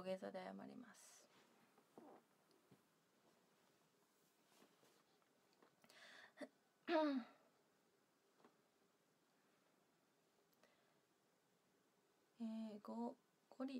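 A young woman speaks close to a microphone in short bursts, with pauses.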